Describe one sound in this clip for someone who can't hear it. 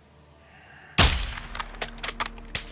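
A rifle shot cracks loudly and echoes.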